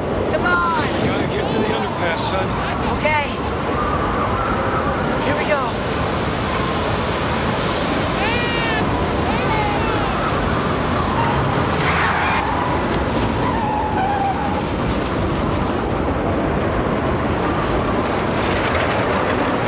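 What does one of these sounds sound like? A car engine rumbles steadily while driving.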